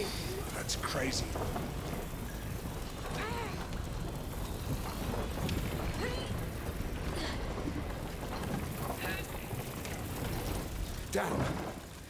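A wooden cart rumbles over rough ground.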